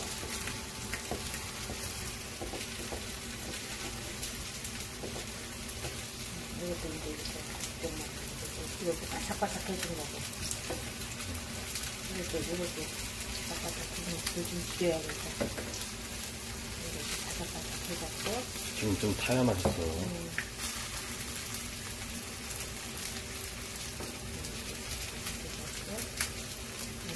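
Oil sizzles steadily in a frying pan.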